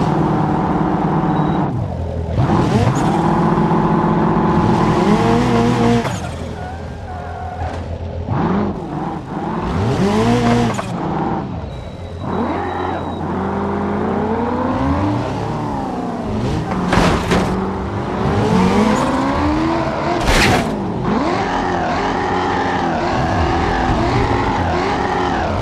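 A car engine revs up and down as it accelerates and shifts gears.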